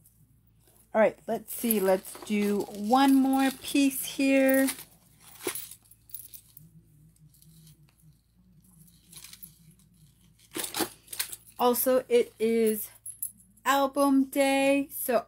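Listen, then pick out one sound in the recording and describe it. A woman talks with animation, close to the microphone.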